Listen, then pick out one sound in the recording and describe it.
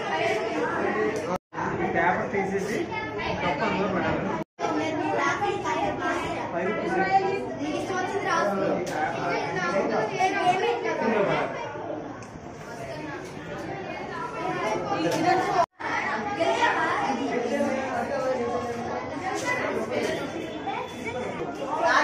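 Many people chatter at once in a crowded, echoing room.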